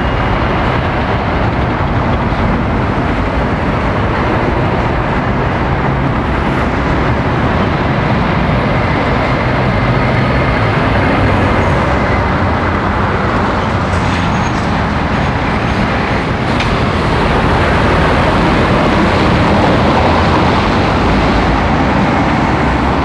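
Heavy lorry engines rumble close by as lorries drive slowly past.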